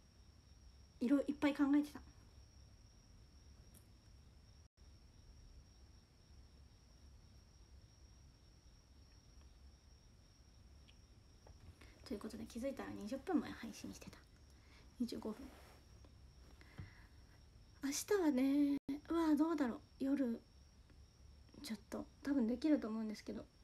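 A young woman talks calmly and close to a microphone, in short bursts with pauses.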